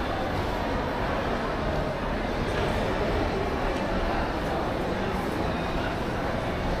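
A crowd murmurs softly in the distance, echoing through a large hall.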